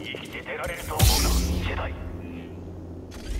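A lightsaber ignites with a sharp buzzing whoosh.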